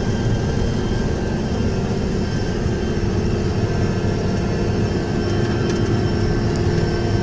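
The tractor cab rattles and shakes as it rolls along.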